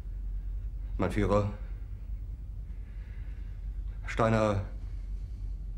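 A middle-aged man speaks in short, halting phrases.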